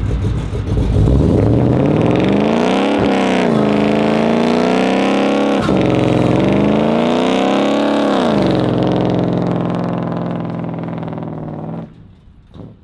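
Tyres screech as they spin on pavement.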